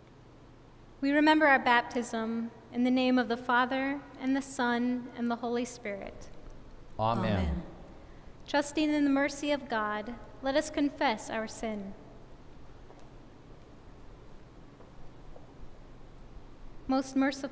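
A young woman reads aloud calmly through a microphone in a large echoing room.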